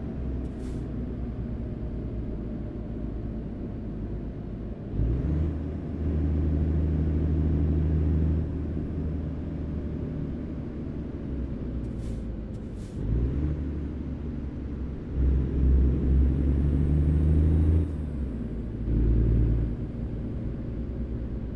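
A truck's diesel engine rumbles steadily, growing louder and softer as it speeds up and slows down.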